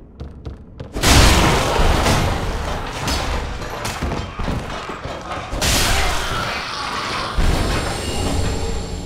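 Blades swing and clash in a fight.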